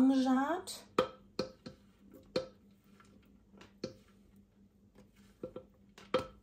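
A metal scraper taps and knocks against the rim of a glass bowl.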